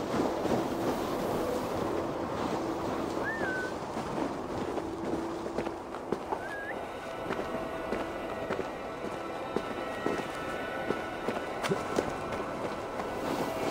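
Wind blows steadily through snow.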